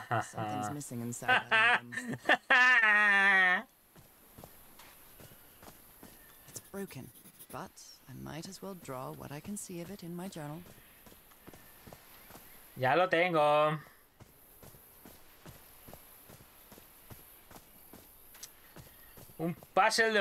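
A man talks calmly and close into a microphone.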